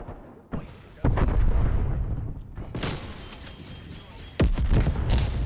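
A rifle fires loud single shots that echo briefly.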